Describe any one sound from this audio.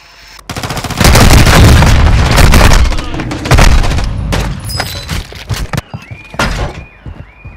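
Loud gunshots ring out in rapid bursts.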